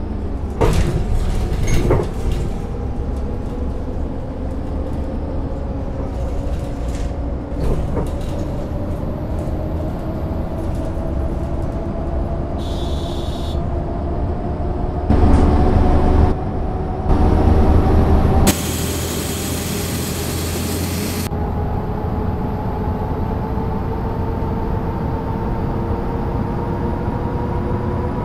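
A bus engine drones steadily, its pitch slowly rising as the bus speeds up.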